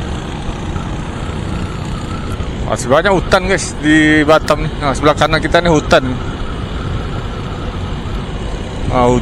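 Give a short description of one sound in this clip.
Motorcycle engines hum steadily nearby.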